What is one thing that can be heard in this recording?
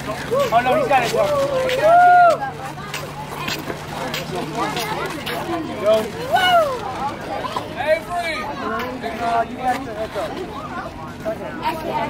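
Young girls chatter and call out excitedly nearby, outdoors.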